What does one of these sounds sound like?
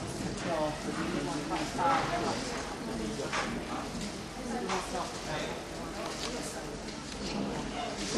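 Several women chat nearby in a large echoing hall.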